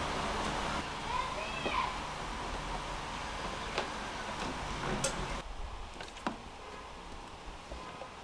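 Hands click and rattle plastic tubing and fittings.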